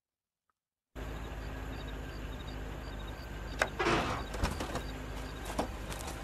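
A car engine idles.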